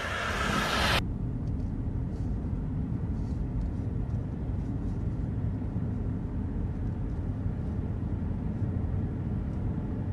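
A car drives along a road, heard from inside as a steady low rumble.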